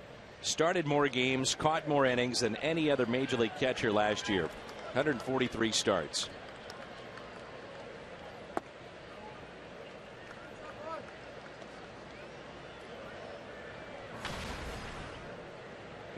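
A stadium crowd murmurs in the distance.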